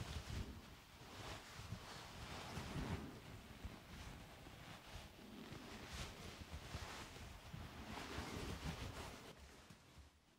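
Soft fabric brushes and rustles close to a microphone.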